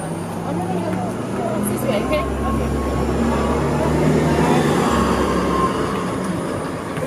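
A bus engine rumbles loudly as the bus passes close by.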